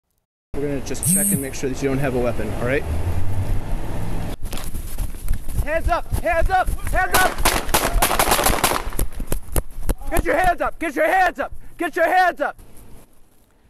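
A man shouts commands loudly close by.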